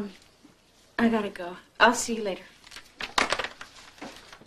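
A woman speaks into a telephone.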